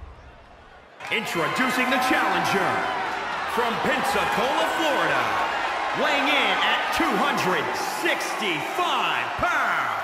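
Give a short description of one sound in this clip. A large crowd cheers and whistles in an echoing arena.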